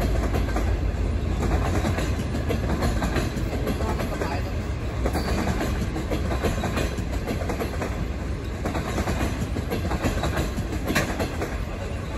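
A passenger train rumbles steadily past nearby.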